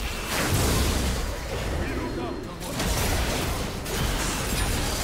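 Blows and impacts thud rapidly.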